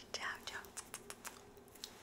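A young woman blows a kiss.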